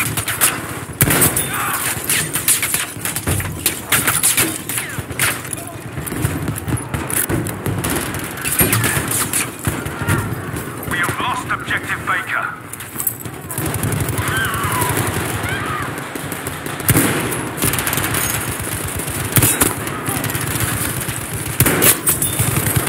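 Rifle shots crack loudly, with sharp echoes.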